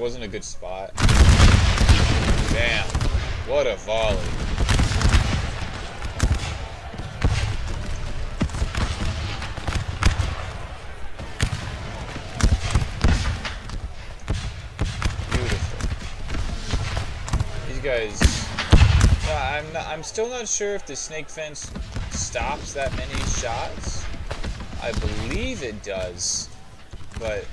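Rifle volleys crack and rumble in rapid bursts.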